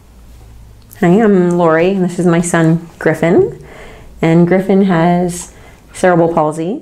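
A woman speaks calmly and warmly close by.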